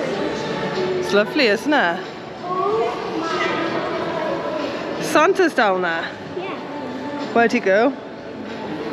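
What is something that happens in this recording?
Young children shout and squeal excitedly close by.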